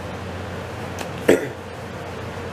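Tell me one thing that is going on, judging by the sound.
Paper tissue rips off a roll.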